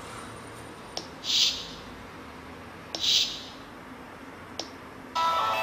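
A phone game gives short sounds as menu buttons are tapped.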